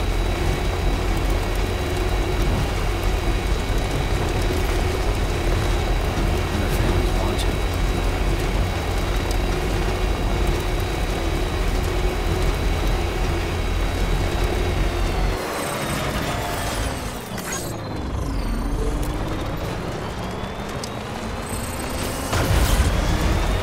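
A truck engine rumbles steadily as it drives along a road.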